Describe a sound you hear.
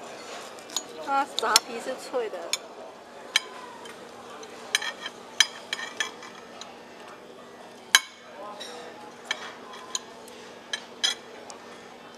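Metal cutlery clinks and scrapes against a ceramic plate.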